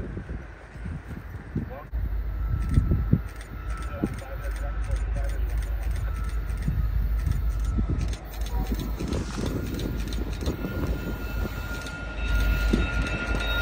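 Wind gusts roar against the microphone outdoors.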